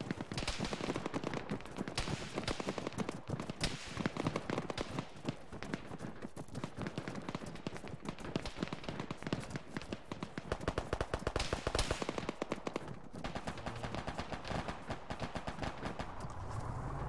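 Boots pound quickly on a hard road.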